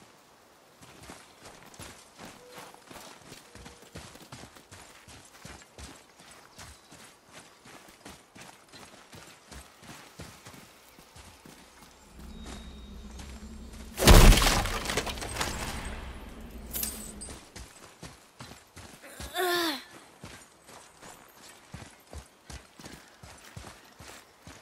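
Heavy footsteps crunch steadily over dirt and leaves.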